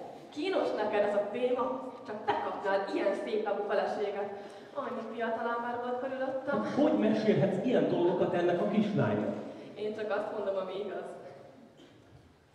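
A woman speaks loudly and with feeling.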